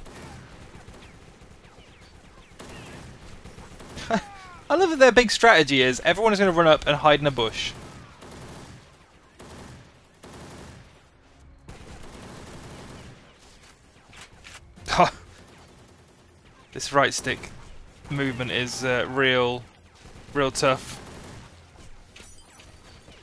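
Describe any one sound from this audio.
Rapid bursts of rifle gunfire crack.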